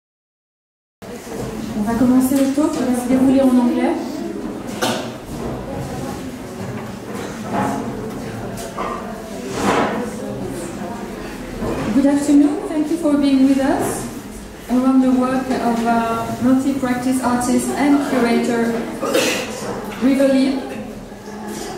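A woman speaks calmly into a microphone over a loudspeaker.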